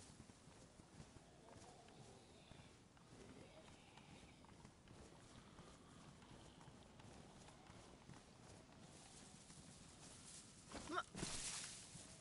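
Footsteps rustle through grass.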